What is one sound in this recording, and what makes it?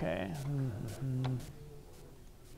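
A man speaks over a loudspeaker in a large echoing room.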